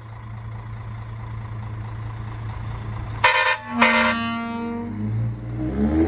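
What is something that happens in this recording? A truck's diesel engine idles with a low, steady rumble.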